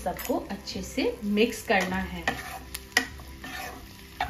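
A spatula scrapes and tosses vegetables in a pan.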